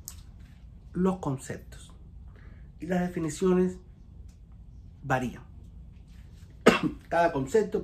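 A middle-aged man coughs close by.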